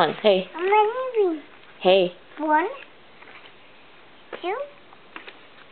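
A young child speaks in a high, sing-song voice close by.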